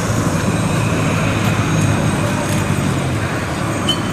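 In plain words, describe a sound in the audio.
A tram rolls past nearby.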